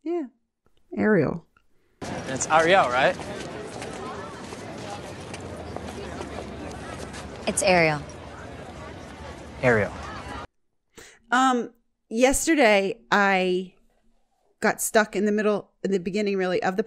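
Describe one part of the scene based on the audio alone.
A woman talks into a close microphone.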